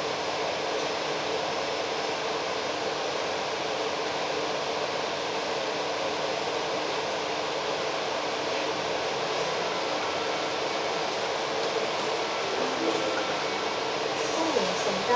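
A vehicle engine hums steadily from inside as the vehicle moves slowly along a road.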